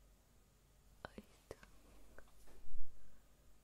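Fingernails tap on a phone case.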